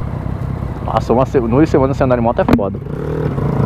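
A motorcycle engine is revved in quick bursts.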